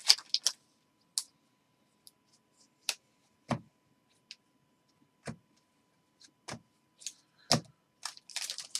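Cards snap and shuffle between fingers.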